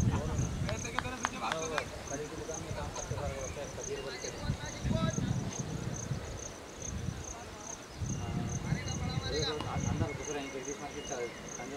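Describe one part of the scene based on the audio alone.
Wind rumbles across the outdoor field.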